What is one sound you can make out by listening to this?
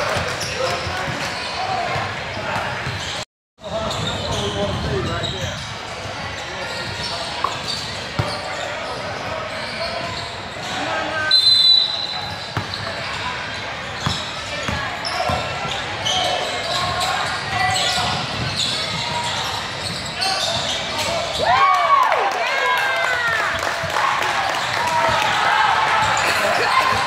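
Young players and spectators talk and call out in a large echoing hall.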